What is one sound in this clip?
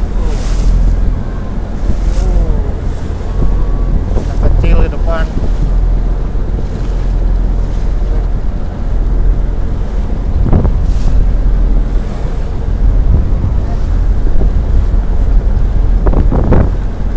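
Wind blows hard across a microphone.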